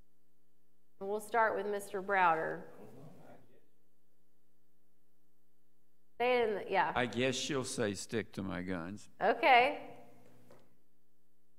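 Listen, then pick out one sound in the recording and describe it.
A woman speaks into a microphone, heard through a loudspeaker in a room.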